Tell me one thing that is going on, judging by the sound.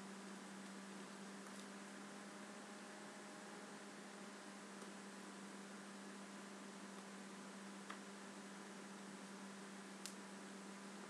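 Hands rustle softly through hair.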